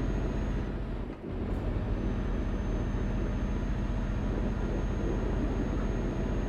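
A truck engine rumbles steadily while driving.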